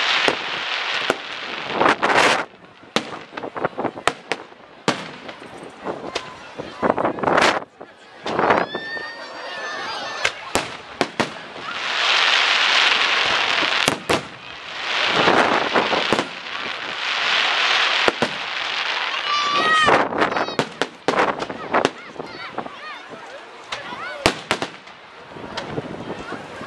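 Fireworks crackle and fizzle.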